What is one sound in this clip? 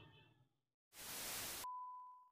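Loud static hisses briefly.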